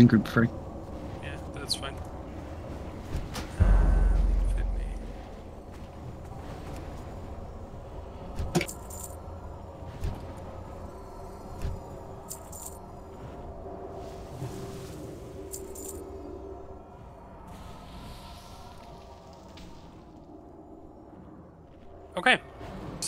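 Spell effects crackle and whoosh in a game battle.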